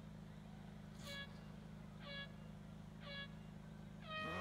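Starting beeps sound in a short series.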